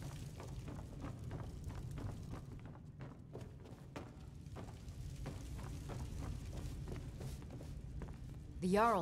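Footsteps thud quickly on a wooden floor.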